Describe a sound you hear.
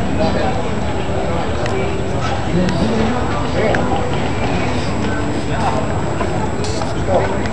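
A crowd of adult men and women chatter outdoors nearby.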